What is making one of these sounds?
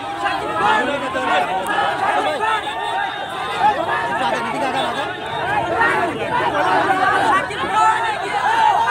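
A large crowd shouts and cheers loudly all around, close by, outdoors.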